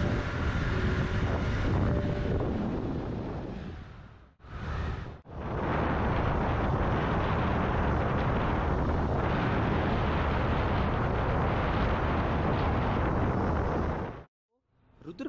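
Wind roars loudly against a moving motorcycle.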